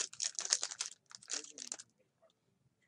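A foil card pack wrapper crinkles as it is torn open.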